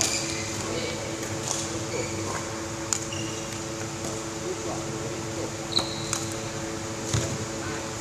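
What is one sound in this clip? A badminton racket strikes a shuttlecock.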